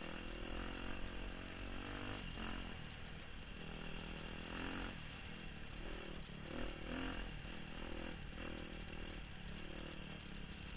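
A dirt bike engine revs loudly and roars up and down in pitch.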